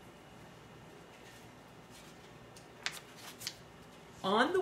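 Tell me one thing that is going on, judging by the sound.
Paper pages rustle as a page is turned.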